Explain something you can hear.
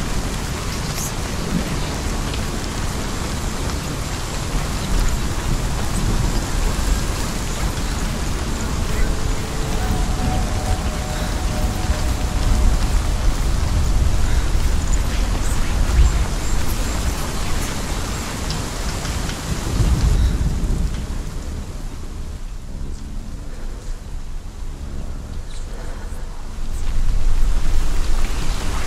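Footsteps run quickly over soft earth and grass.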